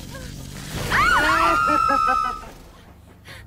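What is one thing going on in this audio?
A young woman screams in pain.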